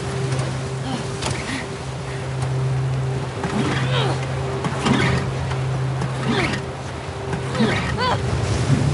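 Rough waves splash and churn against a small boat.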